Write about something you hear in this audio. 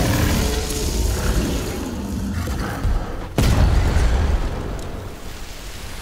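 Giant beasts roar loudly.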